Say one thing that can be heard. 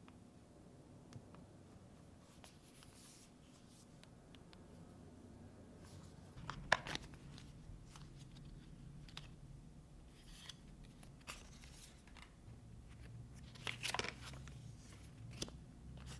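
Paper and plastic wrapping rustle and crinkle as hands unpack a phone.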